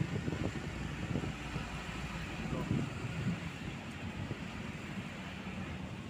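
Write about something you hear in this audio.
A diesel dump truck rolls past.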